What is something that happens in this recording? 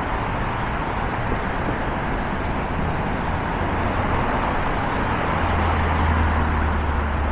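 Steady traffic roars on the roads below.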